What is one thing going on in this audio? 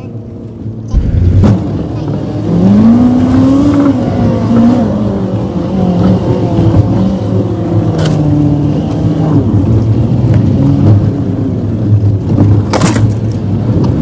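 A vehicle thumps and rattles over bumpy dirt ground.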